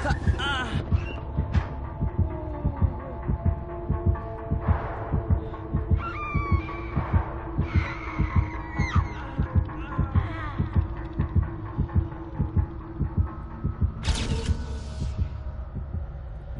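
A heartbeat pounds loudly and quickly, then stops.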